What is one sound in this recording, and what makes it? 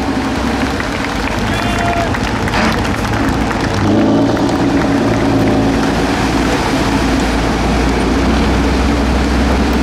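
Tyres churn and splash through deep mud.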